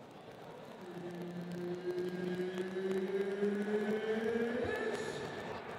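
A crowd cheers louder and louder.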